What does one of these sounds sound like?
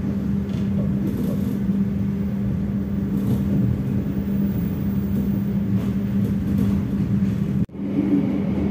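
A passing train rumbles and clatters along the rails close by.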